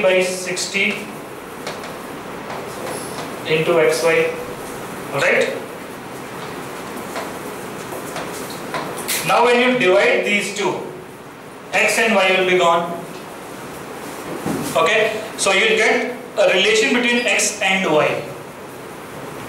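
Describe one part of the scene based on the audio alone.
A man speaks calmly through a headset microphone, explaining in short bursts with pauses.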